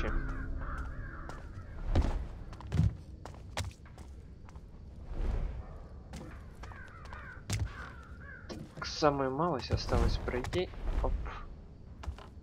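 Footsteps tread softly on stone.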